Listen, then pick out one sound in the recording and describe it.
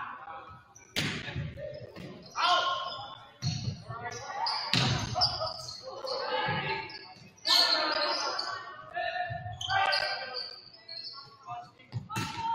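A volleyball is struck with sharp smacks in a large echoing gym.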